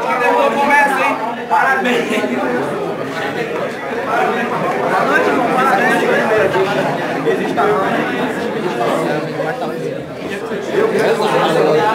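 A group of young men laugh and cheer nearby.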